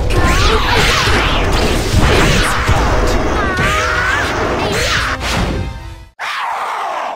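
Loud blows, clashes and magical blasts crash in a fast fight.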